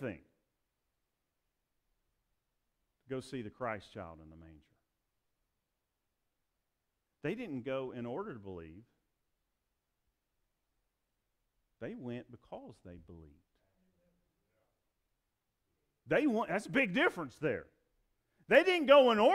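A middle-aged man preaches with animation through a microphone, in bursts with pauses.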